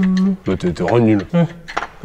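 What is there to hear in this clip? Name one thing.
A mallet taps on metal.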